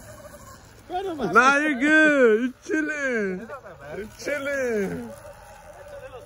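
A man speaks with animation close by, outdoors.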